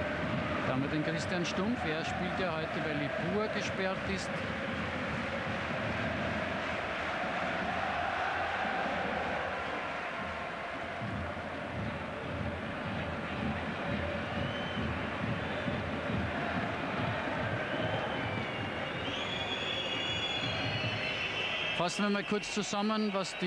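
A large stadium crowd cheers and chants steadily, heard from a distance.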